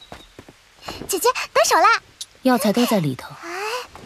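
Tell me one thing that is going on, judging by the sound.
A second young woman answers in a pleading voice.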